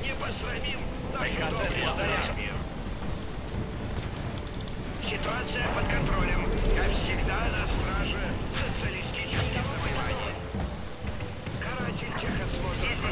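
Heavy machines rumble steadily.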